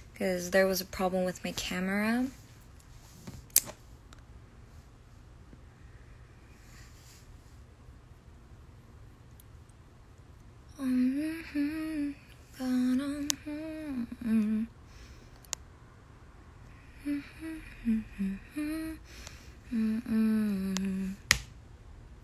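A young woman speaks and sings softly close to a microphone, in short bursts.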